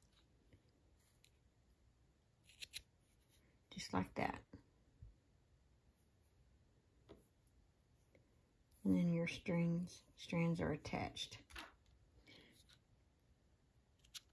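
Small scissors snip through yarn.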